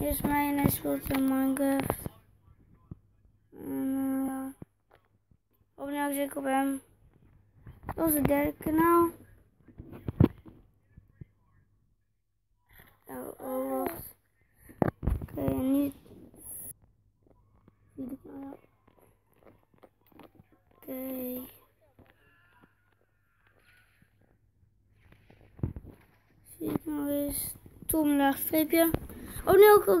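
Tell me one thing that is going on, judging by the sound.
A young boy talks with animation close to a microphone.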